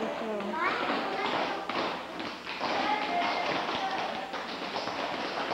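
Children's shoes tap and shuffle on a wooden floor.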